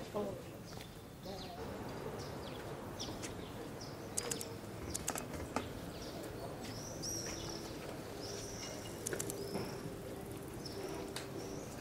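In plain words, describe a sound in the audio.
Footsteps shuffle slowly on pavement.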